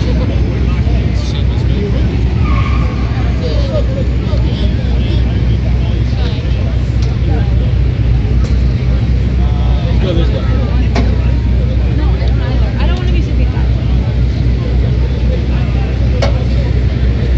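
A busy street crowd chatters all around outdoors.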